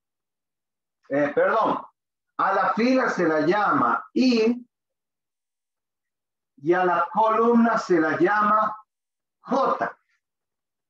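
An older man speaks calmly, explaining in short phrases close by.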